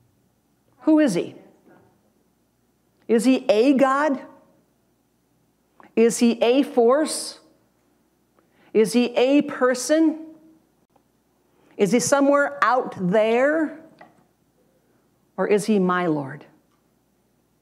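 A middle-aged woman speaks in measured phrases with pauses, through a microphone.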